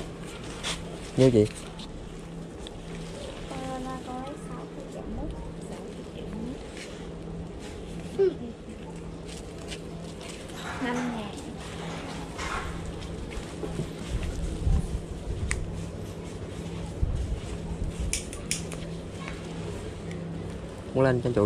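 Paper banknotes rustle in hands.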